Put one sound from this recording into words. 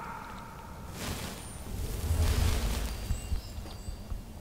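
A magic spell whooshes and rumbles with a deep roar.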